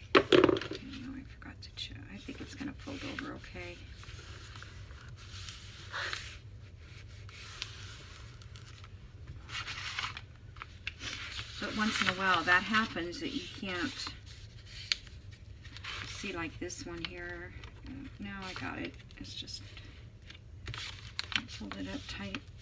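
Paper rustles and crinkles as hands fold and press it.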